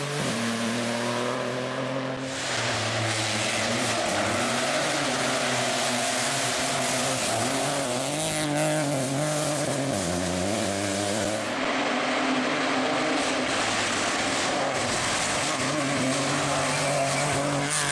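A rally car engine roars loudly, revving up and down as it races past.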